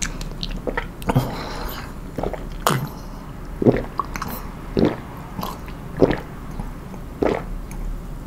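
A man gulps a drink in loud, regular swallows.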